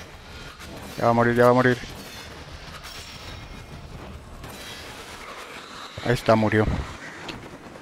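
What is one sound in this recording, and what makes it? A man speaks into a microphone with animation.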